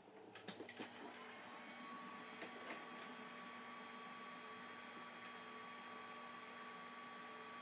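An electronic device hums with a steady high whine.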